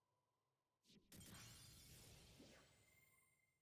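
A soft game sound effect whooshes.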